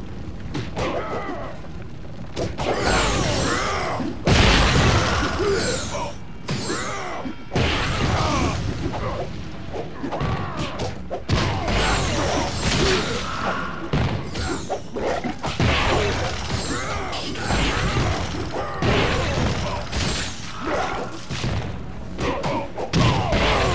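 Punches and kicks land with sharp thuds in quick flurries.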